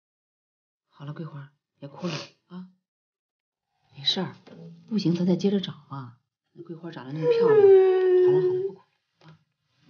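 A young woman sobs and cries.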